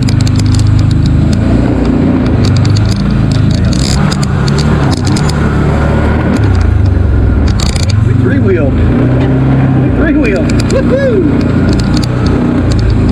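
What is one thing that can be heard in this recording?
An off-road vehicle engine rumbles steadily up close.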